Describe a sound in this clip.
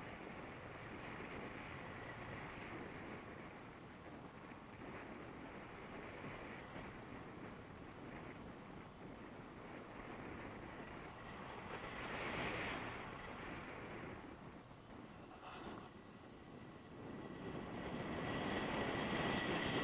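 Wind rushes steadily past, as when flying outdoors.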